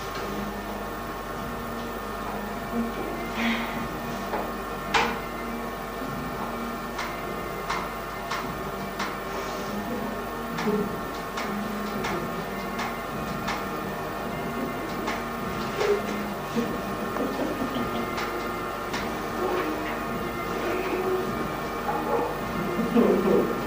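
A middle-aged woman talks conversationally.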